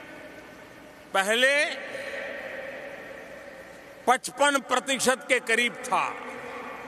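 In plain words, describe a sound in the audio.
A large crowd murmurs and cheers in a vast open space.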